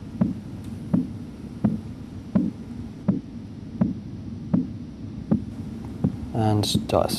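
A heartbeat thumps steadily and evenly through a stethoscope.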